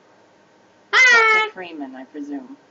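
A young woman speaks calmly and warmly, close by.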